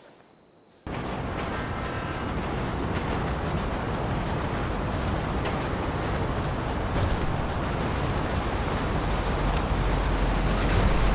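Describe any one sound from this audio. A train engine rumbles, growing louder as it approaches.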